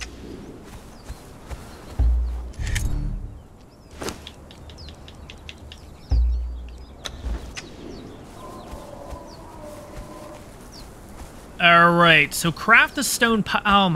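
Footsteps run through dry grass and sand.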